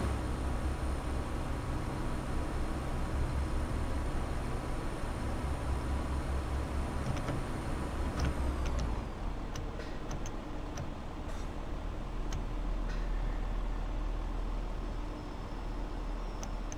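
An electric train motor hums steadily as the train runs along the track.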